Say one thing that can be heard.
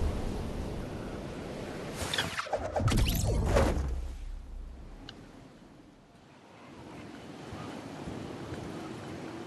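Wind rushes steadily past a falling figure.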